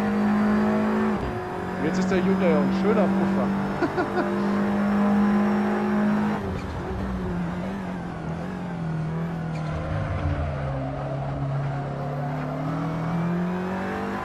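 A racing car engine roars steadily, its pitch dropping as the driver brakes and rising again out of the corner.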